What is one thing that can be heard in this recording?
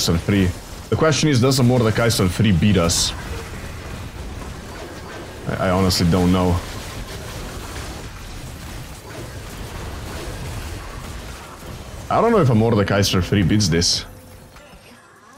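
Battle effects clash and whoosh in a game.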